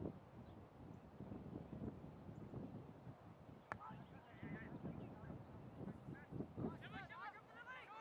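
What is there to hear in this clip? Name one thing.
Wind blows across an open field.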